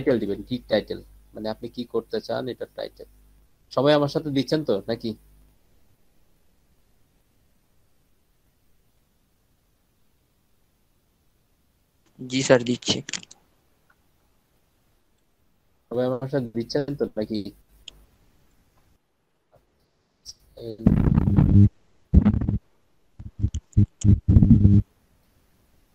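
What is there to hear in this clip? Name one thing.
A young man speaks calmly over an online call.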